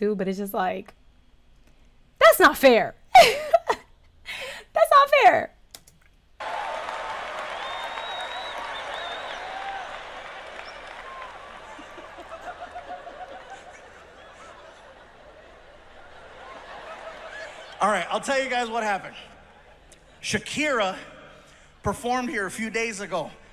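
A young woman speaks casually and cheerfully into a close microphone.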